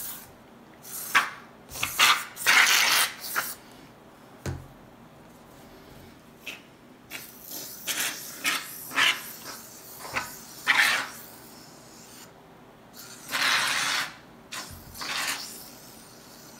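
An aerosol can sprays foam in short hissing bursts.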